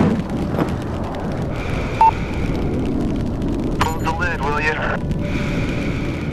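A jet engine idles with a steady low roar.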